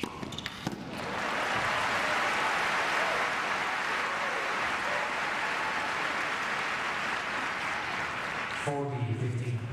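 A large crowd applauds steadily.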